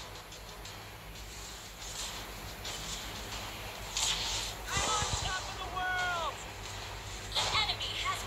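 Game sound effects of spells and attacks clash and whoosh.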